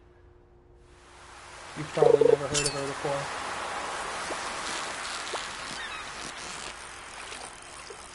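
A fishing reel whirs steadily.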